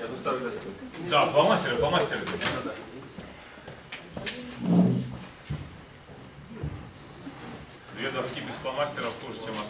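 A second man speaks with animation into a microphone over loudspeakers.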